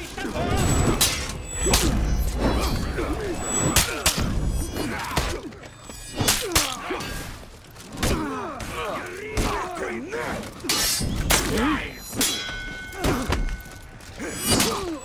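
Swords clash and ring in sharp, repeated strikes.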